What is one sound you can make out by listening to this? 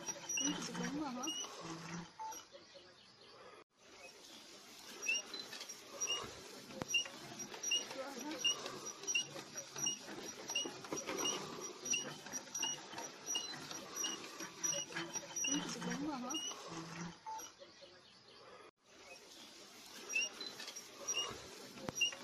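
A hand auger squeaks in a quick, steady rhythm as it is cranked into the ground.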